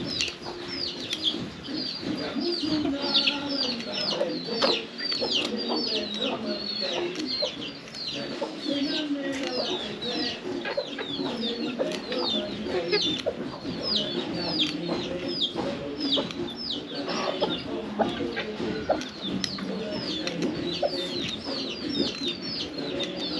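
Chicks peep in rapid, high chirps.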